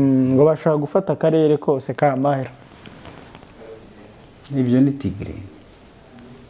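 A man speaks calmly and thoughtfully into a close microphone, with pauses.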